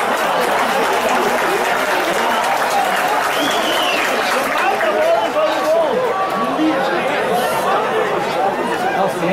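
A crowd of spectators shouts and chatters outdoors.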